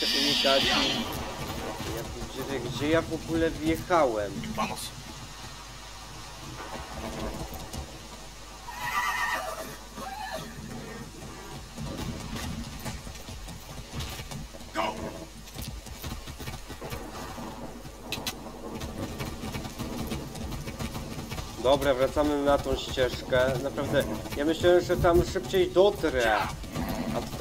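Horse hooves thud steadily on the ground at a gallop.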